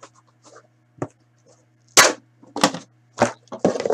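A box knocks down onto a table.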